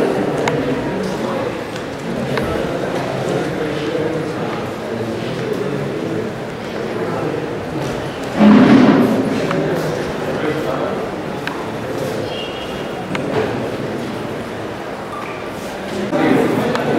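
A crowd of men and women chatter and murmur nearby.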